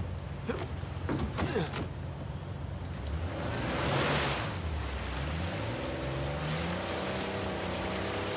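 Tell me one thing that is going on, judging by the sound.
A jeep engine revs and rumbles.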